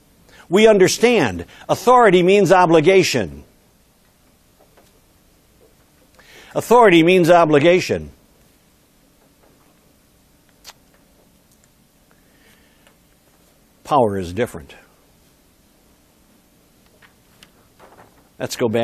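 A middle-aged man speaks with animation in short bursts, with long pauses between them.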